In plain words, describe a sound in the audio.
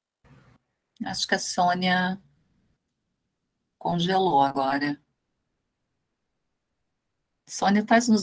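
A middle-aged woman speaks over an online call, in short phrases with pauses.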